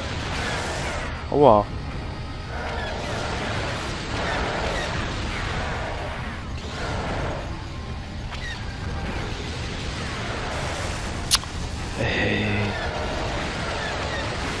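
Laser blasts fire in quick bursts.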